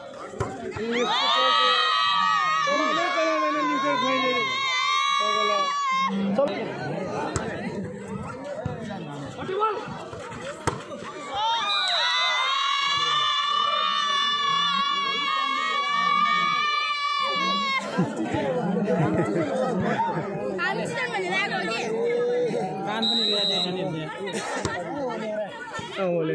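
A volleyball is struck with thuds.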